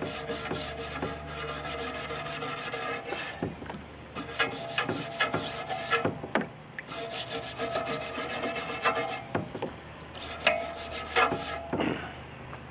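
A brush scrubs rapidly against a metal wheel in bursts.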